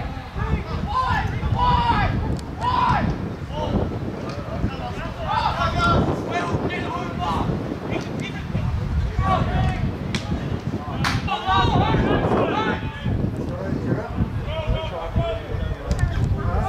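Men shout to each other across a field outdoors.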